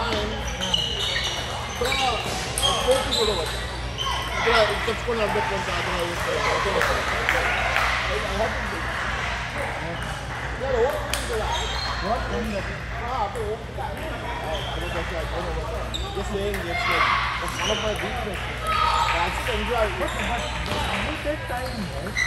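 Table tennis balls click back and forth on tables and paddles.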